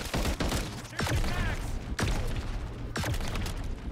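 A loud blast booms and crackles.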